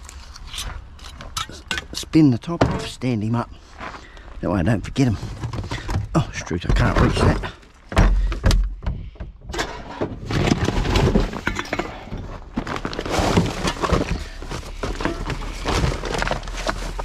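Glass bottles and metal cans clink and rattle.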